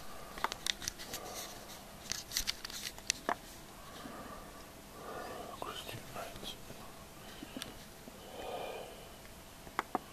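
A middle-aged man speaks quietly and slowly, close to the microphone.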